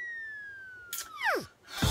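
A young man coughs.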